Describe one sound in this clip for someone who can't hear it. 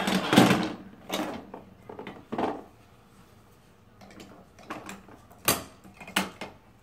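Plastic toy tools knock and clatter on a toy workbench.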